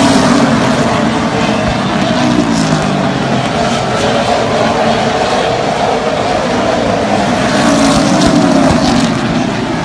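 Race car engines roar loudly as cars speed around a track outdoors.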